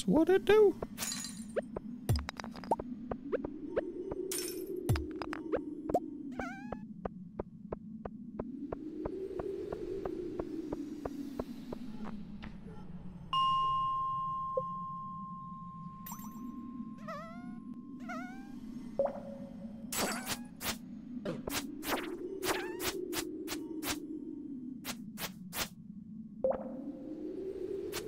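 Quick footsteps tap on a stone floor.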